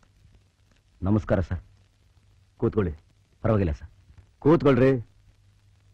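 A second man speaks loudly and emphatically, close by.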